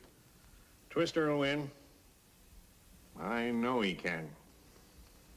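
An older man answers calmly nearby.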